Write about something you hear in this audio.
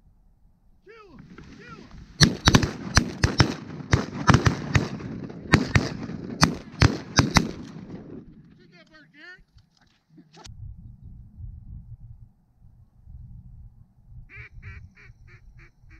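Geese honk and call overhead.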